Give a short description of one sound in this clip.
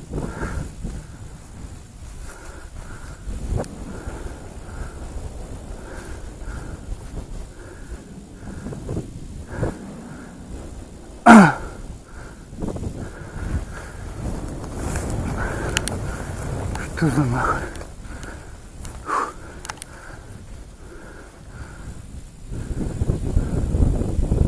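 Wind gusts across an open field, rumbling against the microphone.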